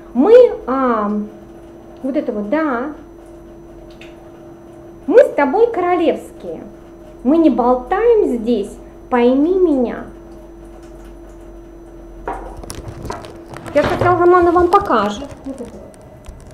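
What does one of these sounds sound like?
A woman speaks calmly, close by, in short phrases.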